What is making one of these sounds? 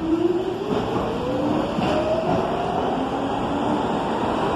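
A train's motor whines, rising in pitch as the train speeds up.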